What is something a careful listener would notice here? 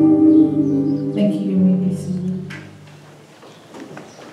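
An electric keyboard plays a sustained chord.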